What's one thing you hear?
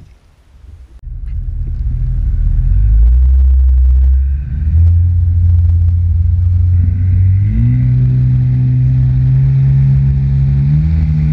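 A jet ski engine roars and rises in pitch as it speeds up.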